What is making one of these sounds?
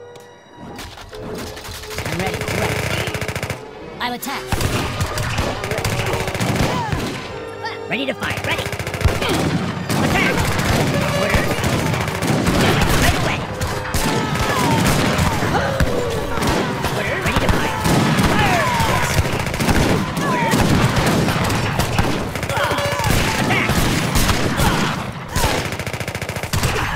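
Weapons clash and clatter in a noisy battle.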